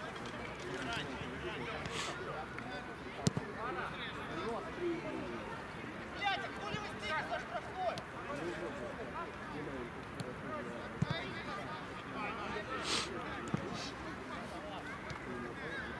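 Young men shout and call to each other across an open field, some way off.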